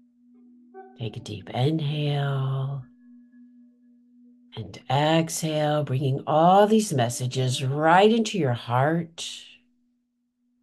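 An older woman speaks with animation into a close microphone.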